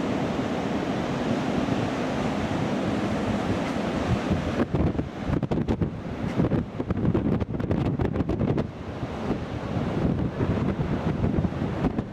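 Waves crash and wash onto a beach.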